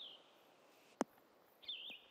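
A golf ball lands with a soft thud on grass.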